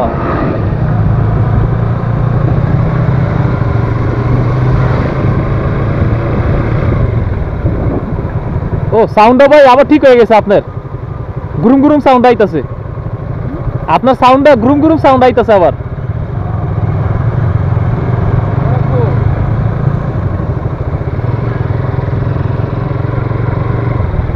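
A motorcycle engine hums while cruising.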